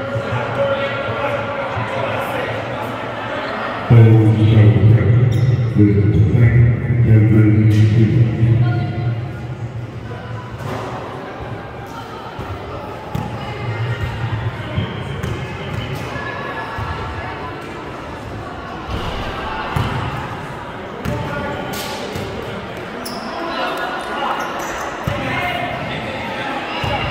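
Players call out to each other from across an echoing hall.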